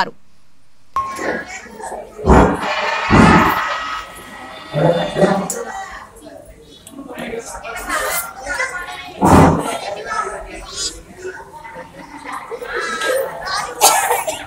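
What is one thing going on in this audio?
A crowd of people chatter and murmur nearby.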